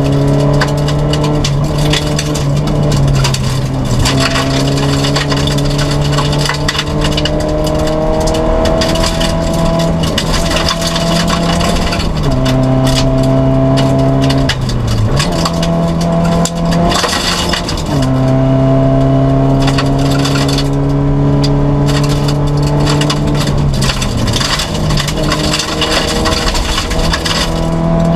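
Gravel rattles and pings against the underside of the car.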